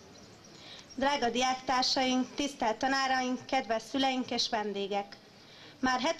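A young woman speaks clearly into a microphone over a loudspeaker outdoors.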